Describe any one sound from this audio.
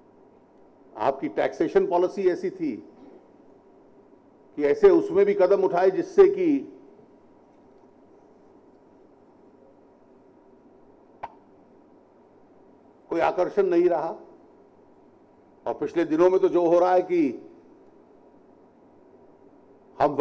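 A middle-aged man speaks forcefully into a microphone in short bursts with pauses.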